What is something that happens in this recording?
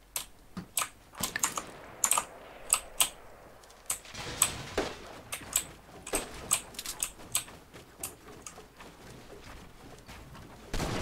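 Wooden building pieces snap into place with quick, sharp clacks.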